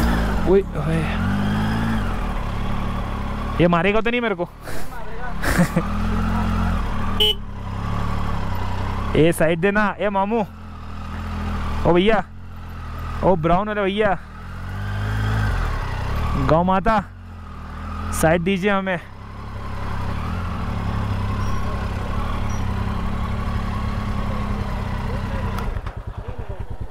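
A motorcycle engine idles and revs at low speed.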